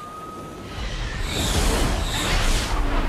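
A jet aircraft roars overhead.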